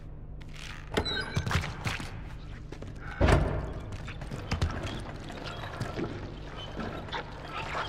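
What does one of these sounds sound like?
A heavy metal grinder clanks and grinds with loud metallic knocks.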